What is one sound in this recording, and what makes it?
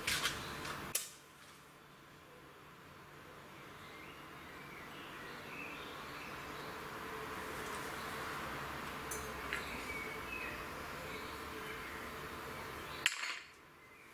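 A lighter flame hisses steadily.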